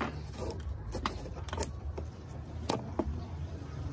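A small knob clicks as it is pulled off.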